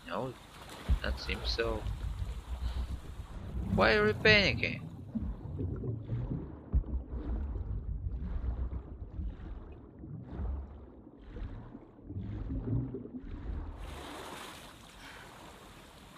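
Water swishes and gurgles with muffled swimming strokes underwater.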